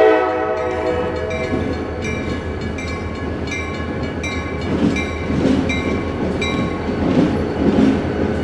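A train rumbles and clatters along the tracks, growing louder as it approaches.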